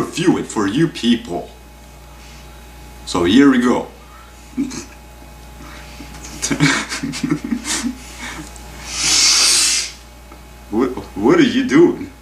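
A young man talks close by in a casual, animated way.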